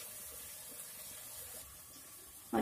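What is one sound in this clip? Onions sizzle softly in a hot pot.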